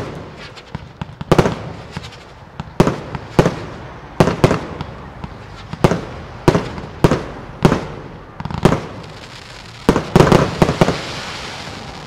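Fireworks burst with loud, sharp booms, one after another, echoing outdoors.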